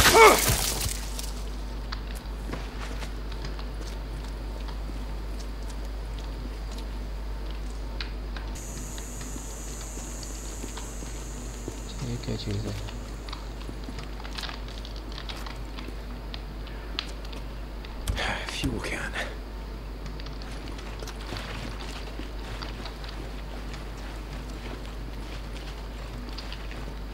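Footsteps crunch on gravel and asphalt.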